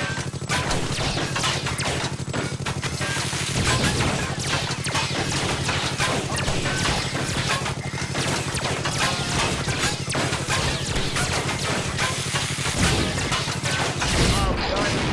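Rapid gunfire blasts and crackles.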